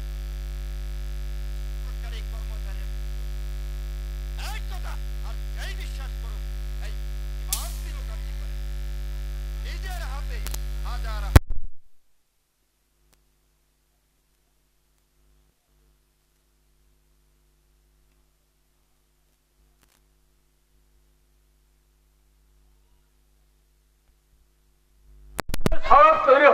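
A man speaks with animation through a loudspeaker.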